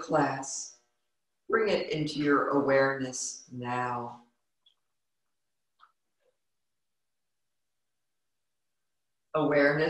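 A woman reads aloud calmly and close to a microphone.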